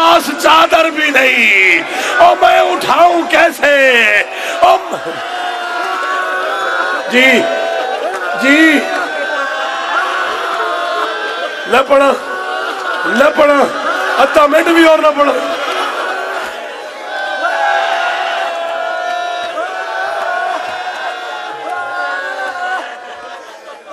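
A man chants a mournful lament loudly through a microphone.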